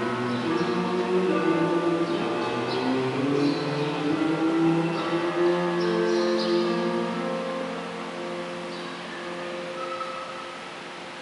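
A man sings in a slow chant, echoing in a large hall.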